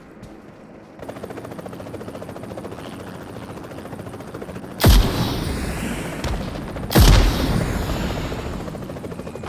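A helicopter's rotor thumps as it flies.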